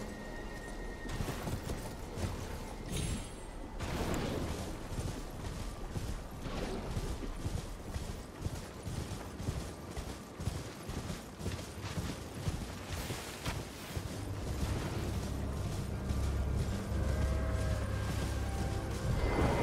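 Hooves gallop steadily over soft ground.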